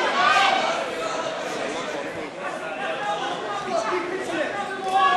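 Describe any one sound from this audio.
A crowd of spectators shouts and cheers loudly in a large hall.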